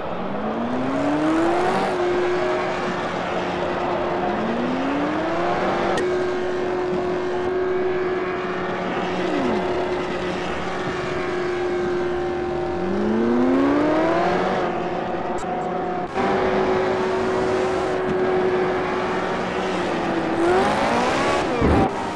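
A racing car engine roars loudly, revving up through the gears and holding a high steady whine.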